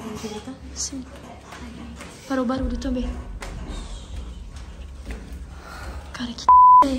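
Young girls talk excitedly close by.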